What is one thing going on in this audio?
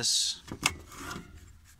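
A plastic battery pack clicks into place.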